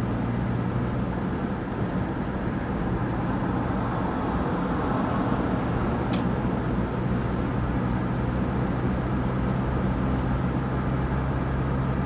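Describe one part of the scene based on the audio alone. Tyres roar on a paved road.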